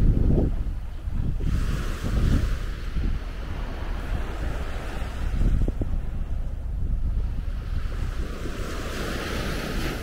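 Small waves wash onto the shore and hiss as they draw back.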